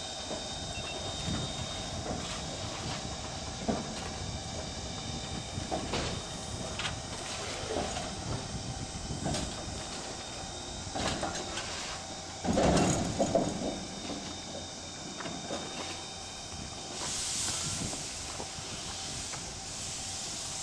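Steel wheels clank and knock on the rails.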